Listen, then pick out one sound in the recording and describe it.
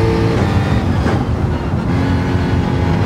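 A racing car engine drops in pitch as the car brakes and shifts down.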